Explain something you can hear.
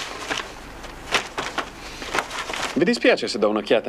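Stiff paper rustles and crackles.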